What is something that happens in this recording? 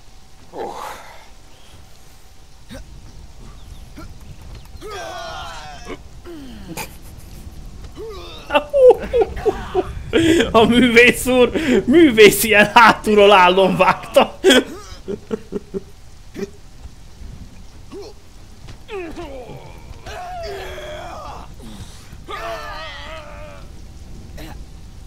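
A man talks with animation into a close microphone, at times loudly.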